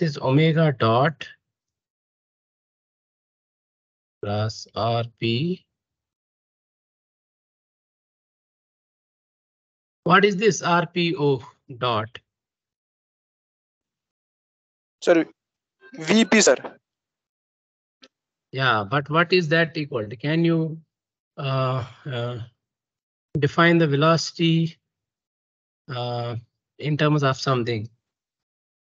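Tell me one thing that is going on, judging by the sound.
A young man explains calmly in bursts, heard through an online call.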